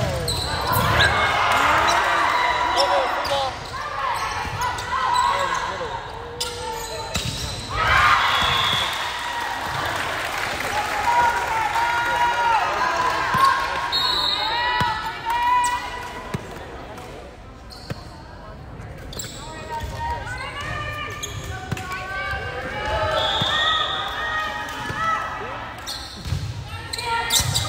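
Shoes squeak sharply on a gym floor.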